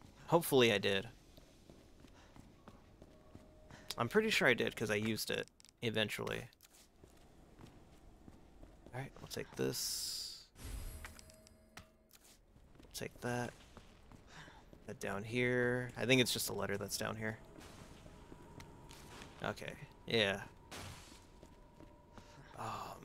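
A young man talks casually into a microphone, in bursts with pauses.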